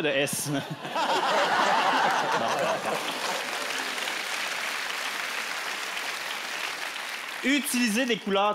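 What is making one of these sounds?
A crowd laughs loudly.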